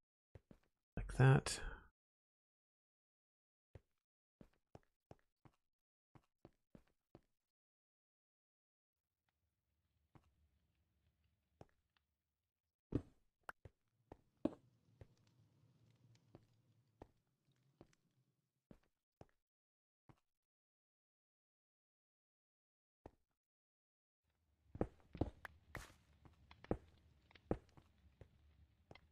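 Stone blocks thud softly into place, one after another.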